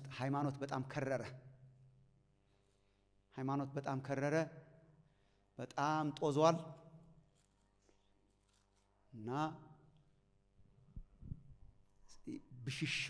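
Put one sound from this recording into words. A man preaches with animation through a microphone, his voice echoing in a large hall, in bursts broken by pauses.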